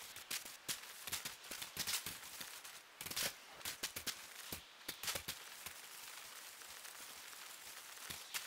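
A shopping cart's plastic wheels rattle and clatter over rocky ground.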